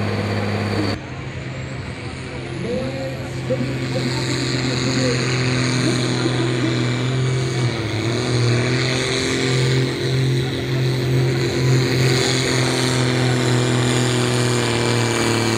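A second tractor engine roars and strains as it pulls away.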